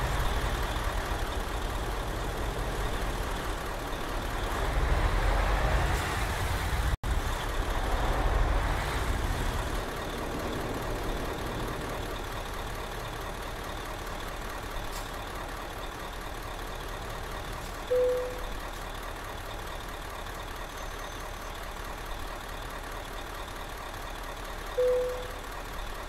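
A bus engine rumbles and hums steadily.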